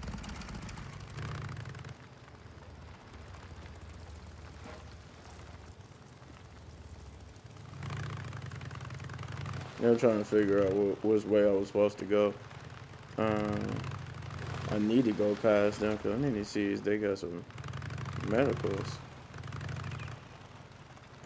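A motorcycle engine rumbles steadily as the bike rides along.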